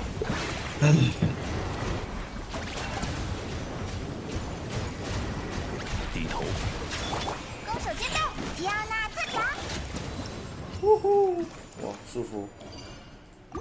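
Loud magical blasts and crackling bursts of battle effects ring out.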